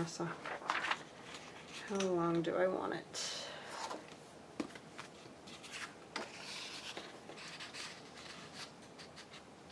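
Cardstock rustles and crinkles as it is handled.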